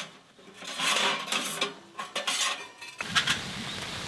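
Metal stove pipe sections clink and scrape as they are fitted together.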